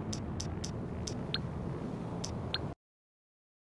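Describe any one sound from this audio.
Short electronic beeps sound as a phone menu is browsed.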